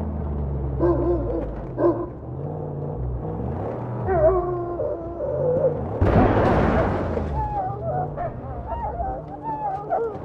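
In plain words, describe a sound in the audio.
A buggy engine roars and revs.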